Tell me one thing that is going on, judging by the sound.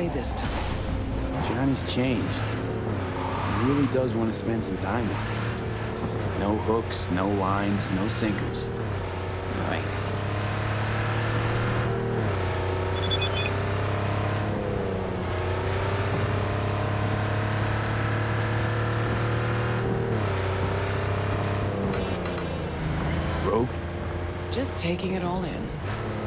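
A car engine hums steadily and shifts gears as the car speeds along.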